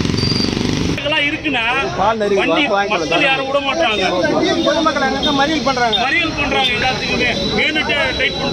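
A crowd of men talk loudly over one another nearby.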